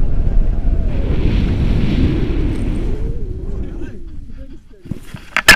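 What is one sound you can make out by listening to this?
Wind rushes and buffets loudly past the microphone.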